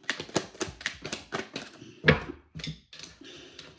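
Playing cards riffle and snap as they are shuffled.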